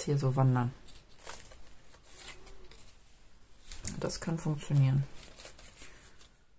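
Paper rustles as hands handle cut pieces.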